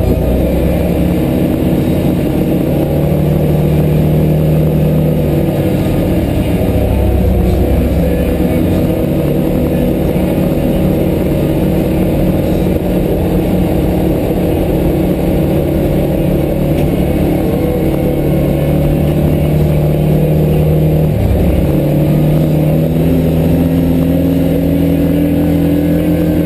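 A vehicle's engine hums steadily from inside the cab.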